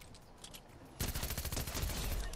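A rifle fires rapid shots in quick bursts.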